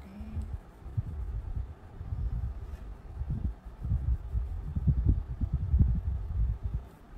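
A crayon rubs and scratches across paper, close by.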